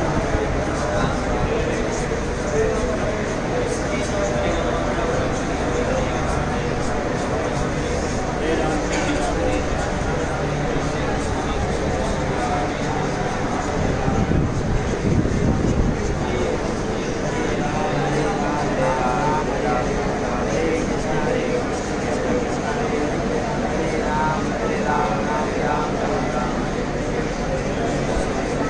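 A group of men and women chant together in unison.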